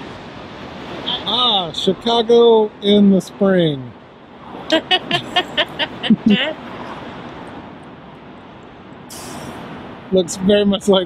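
An elderly woman talks cheerfully close by.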